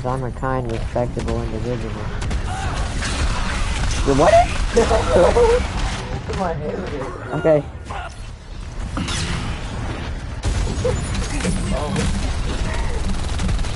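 Video game weapons fire in a fight.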